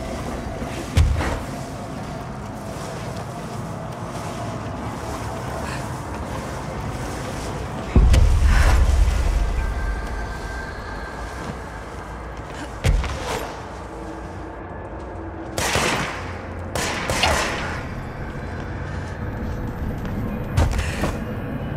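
Heavy thuds sound as a figure lands after falling.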